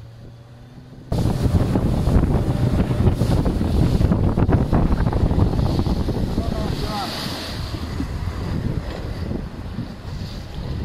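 Waves splash against a sailboat's hull.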